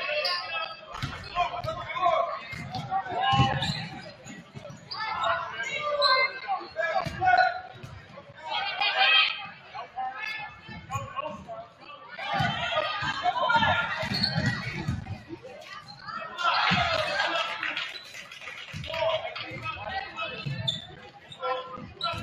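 A basketball thumps on a wooden floor as it is dribbled.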